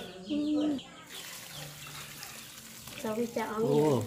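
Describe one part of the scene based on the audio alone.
Water pours from a bowl into a basin.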